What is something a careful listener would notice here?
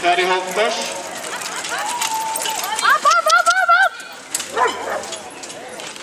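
A man shouts loudly outdoors to urge the horses on.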